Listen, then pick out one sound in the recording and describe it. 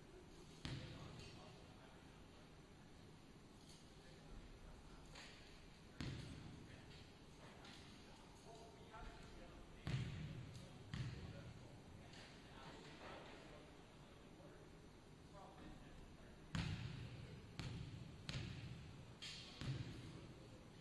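A basketball bounces on a hardwood floor, echoing through a large hall.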